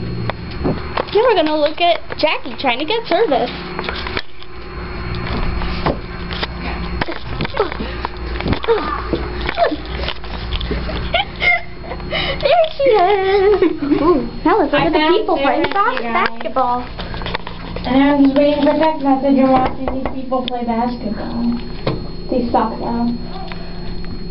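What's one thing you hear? A young girl talks and squeals with excitement close by.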